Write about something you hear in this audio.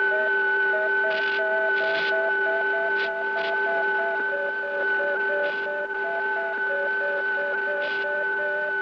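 Old electronic equipment hums with steady high tones.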